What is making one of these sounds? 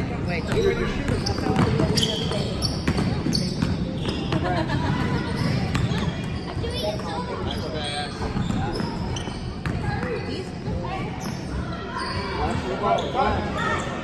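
A basketball bounces, with echoes around a large hall.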